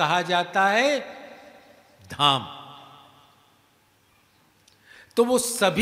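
An elderly man speaks with emphasis into a microphone, his voice ringing out with a long echo.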